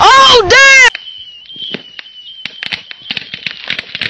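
Sparks crackle and pop in sharp bursts.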